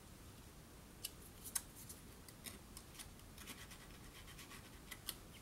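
A craft knife scratches and clicks as it cuts through paper.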